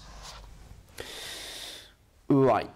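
A board eraser rubs across a whiteboard.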